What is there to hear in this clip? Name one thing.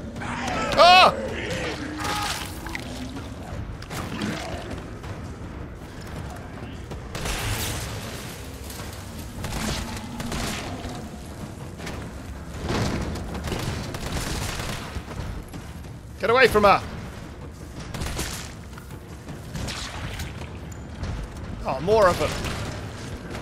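A zombie groans and growls.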